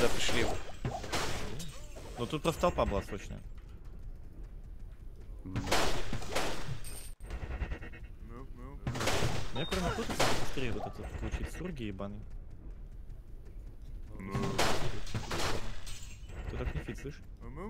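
Magic spells burst and crackle in quick blasts.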